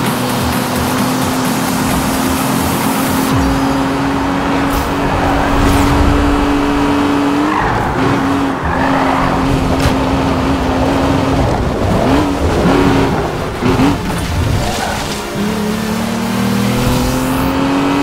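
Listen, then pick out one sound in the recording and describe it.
A sports car engine roars at high speed, its pitch rising and dipping with gear shifts.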